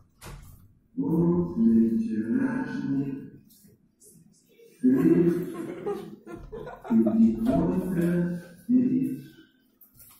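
An elderly man gives a speech into a microphone, heard through a television loudspeaker.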